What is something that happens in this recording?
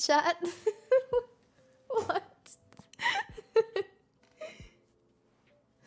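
A young woman laughs and speaks excitedly into a close microphone.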